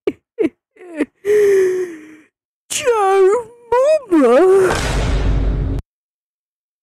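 A cartoonish man's voice sings warbling, wavering notes close up.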